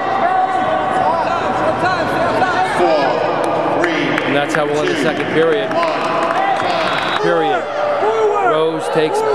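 A crowd of spectators shouts and cheers in an echoing hall.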